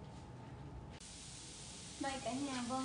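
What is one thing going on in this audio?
Seeds sizzle in hot oil in a frying pan.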